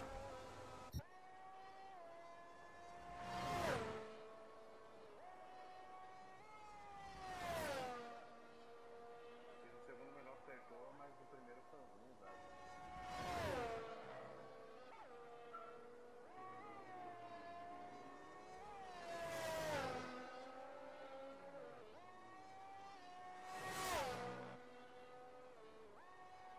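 A racing car engine whines at high pitch and changes pitch as gears shift.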